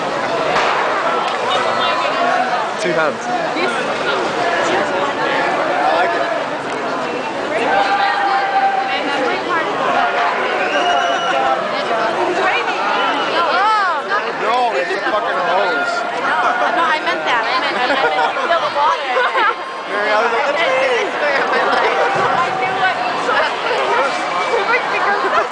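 A large crowd chatters, shouts and cheers close by outdoors.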